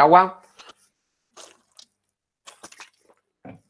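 A young man gulps a drink from a bottle.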